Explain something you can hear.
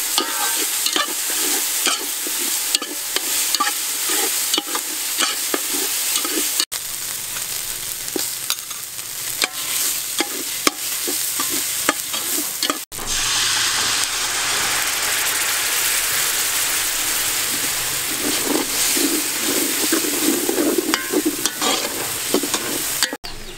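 A metal spatula scrapes against the pot.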